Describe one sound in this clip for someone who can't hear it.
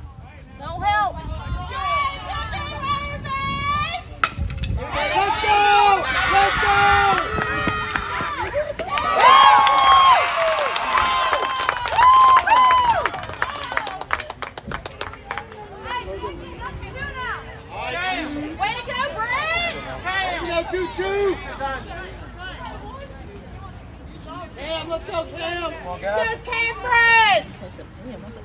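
Young women cheer and shout loudly outdoors.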